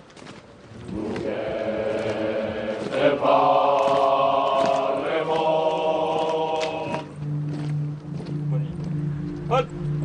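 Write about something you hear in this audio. A chorus of men sings together in unison.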